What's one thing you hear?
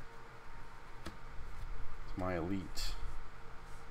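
A playing card is slid and set down on a table.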